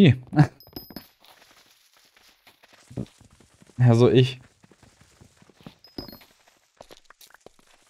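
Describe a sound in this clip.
Game blocks crunch as they break.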